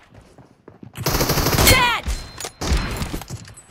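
Gunshots crackle in rapid bursts.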